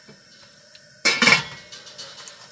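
A metal lid clanks onto a metal pot.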